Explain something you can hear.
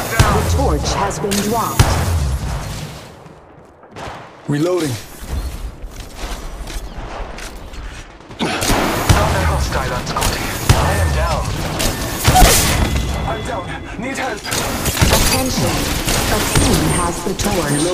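Rapid gunshots crack in bursts.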